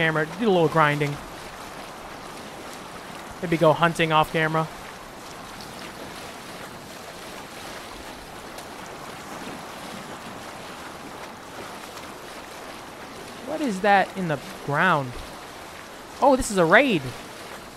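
Water splashes and rushes against the hull of a boat moving steadily along.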